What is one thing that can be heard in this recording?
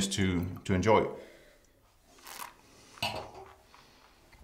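A man sips and slurps wine.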